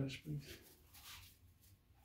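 A spray bottle spritzes a few times.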